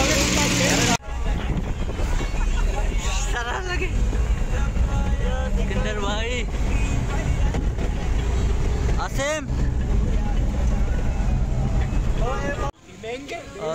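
Several young men talk and laugh nearby.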